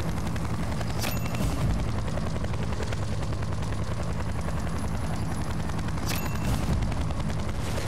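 A helicopter's gun fires in bursts.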